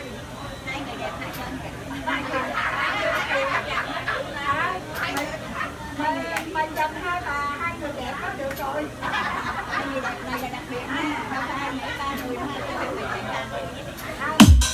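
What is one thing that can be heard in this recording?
A woman speaks into a microphone through loudspeakers in a hall.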